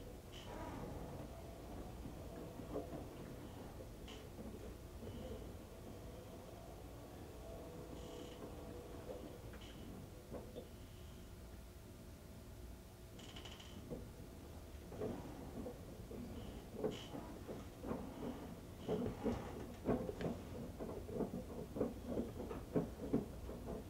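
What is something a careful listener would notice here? Wet laundry thumps and tumbles inside a washing machine drum.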